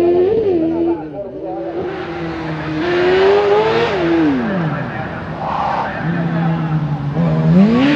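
A small racing car's engine revs hard, rising and falling as it accelerates and shifts gears.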